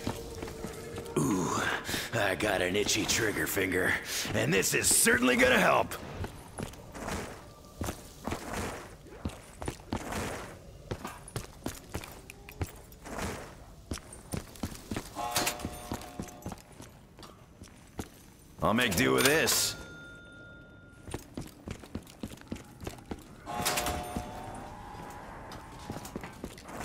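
Footsteps crunch quickly over snow and rubble.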